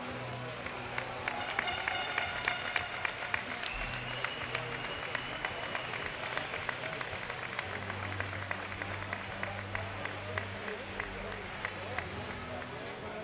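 Basketballs bounce repeatedly on a wooden court in an echoing hall.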